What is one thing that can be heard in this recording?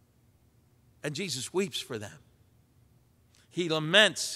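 An older man speaks with emphasis into a microphone, with pauses between phrases.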